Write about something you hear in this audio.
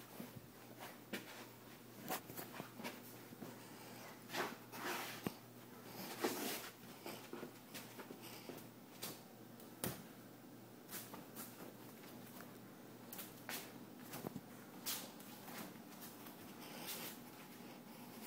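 Bare feet pad softly across carpet and then hard floor tiles.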